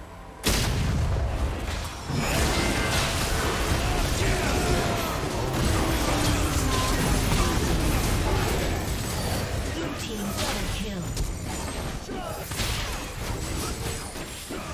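Spell blasts and impacts crash and crackle during a video game battle.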